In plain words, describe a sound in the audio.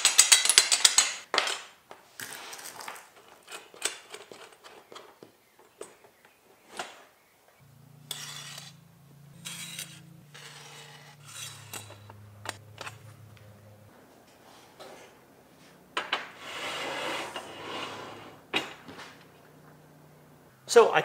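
Metal parts click and knock together.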